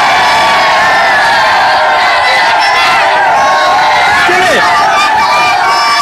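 A large crowd of children cheers and shouts loudly outdoors.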